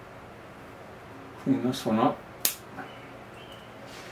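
Small scissors snip twigs.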